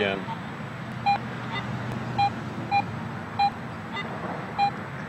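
A metal detector beeps in short, repeated tones.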